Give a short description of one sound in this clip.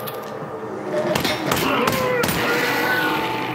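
A gun fires several sharp shots in quick succession.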